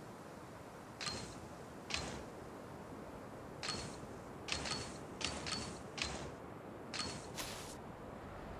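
Gloved hands clank against metal ladder rungs in a video game.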